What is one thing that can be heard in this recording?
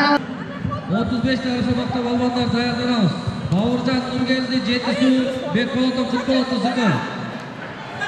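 A man shouts loudly in an echoing hall.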